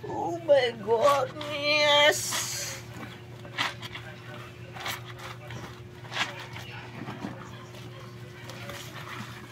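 Water sloshes and splashes as clothes are scrubbed in a tub.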